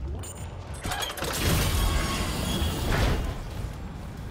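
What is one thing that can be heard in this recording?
A heavy metal door slides open with a loud hiss.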